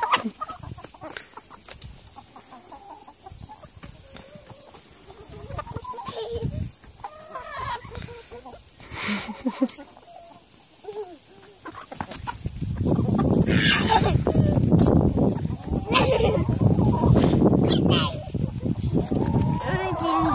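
A young child speaks and squeals excitedly close by.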